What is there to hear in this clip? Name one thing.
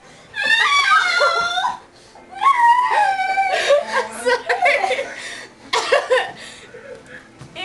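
A young girl sings in a high voice close by.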